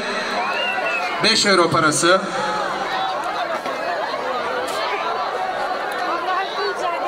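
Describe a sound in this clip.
An elderly man speaks loudly into a microphone over loudspeakers.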